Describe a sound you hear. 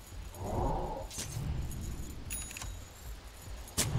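Video game spell and hit sound effects ring out in quick bursts.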